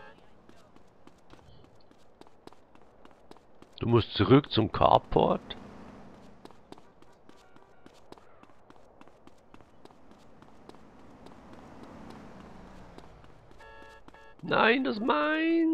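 Footsteps slap quickly on hard ground.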